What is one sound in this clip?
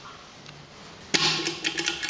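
A finger presses a button with a soft click.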